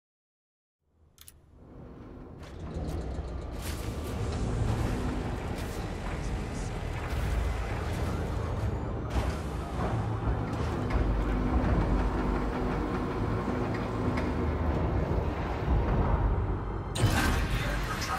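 A spaceship's engines rumble low and steadily as it glides forward.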